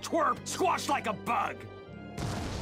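A man shouts with gruff glee at close range.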